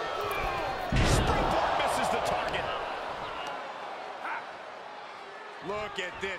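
A crowd cheers in a large arena.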